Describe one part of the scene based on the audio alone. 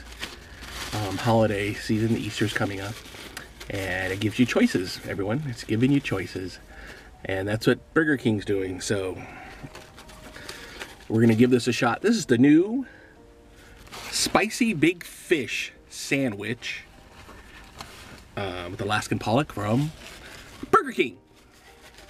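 A middle-aged man talks with animation close to the microphone.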